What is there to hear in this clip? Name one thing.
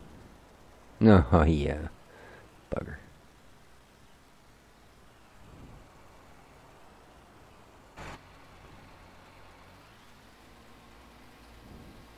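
A tractor engine idles with a low hum.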